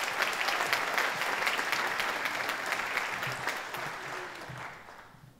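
An audience claps in a large echoing hall, and the applause fades out.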